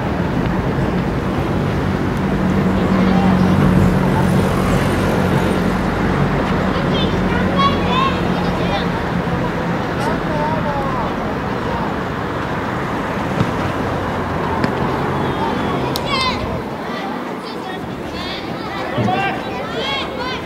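Children shout and call out far off across an open outdoor field.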